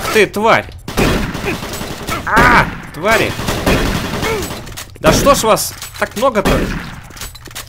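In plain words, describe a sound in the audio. A shotgun fires loud blasts.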